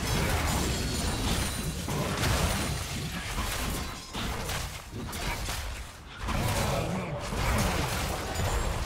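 Spell effects crackle and whoosh during a fast fight.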